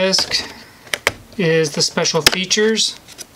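A disc snaps free of a plastic case with a click.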